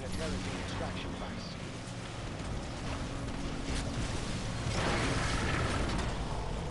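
Futuristic weapons fire and blasts crackle in a battle.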